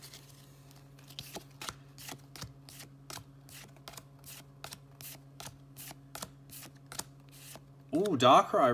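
Trading cards slide and flick against each other in quick, steady succession.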